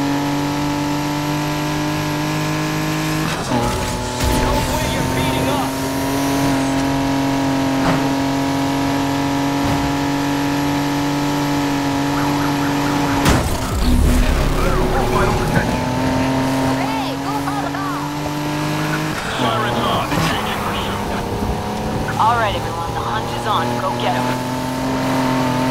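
A racing car engine roars at high speed and shifts gears.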